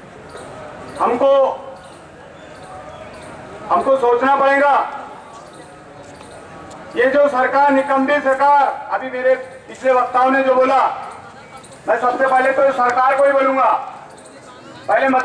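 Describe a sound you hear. A man shouts slogans into a microphone through a loudspeaker outdoors.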